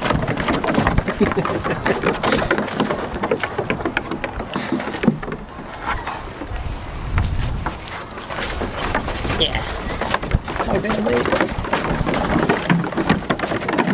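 Small goats' hooves clatter on a wooden deck.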